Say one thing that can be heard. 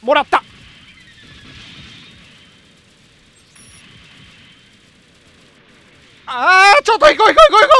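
Beam weapons fire with short electronic zaps.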